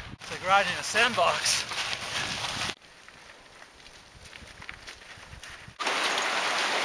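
Bike tyres crunch over loose gravel.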